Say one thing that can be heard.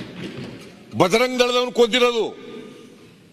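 A man shouts loudly across a large hall.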